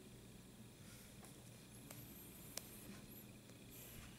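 A finger taps lightly on a phone's touchscreen.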